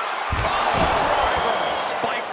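Heavy thuds hit the wrestling mat.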